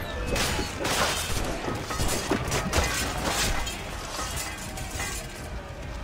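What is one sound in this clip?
Swords clash in close fighting.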